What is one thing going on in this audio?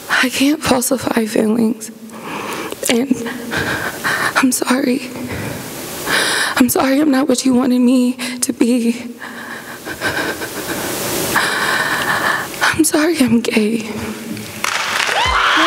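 A young woman recites with feeling into a microphone.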